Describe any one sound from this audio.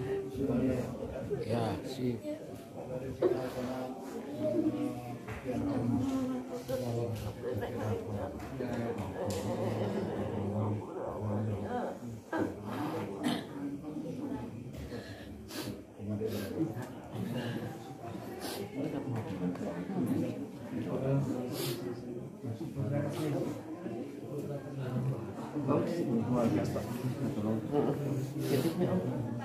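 Several men and women talk and murmur close by in a room.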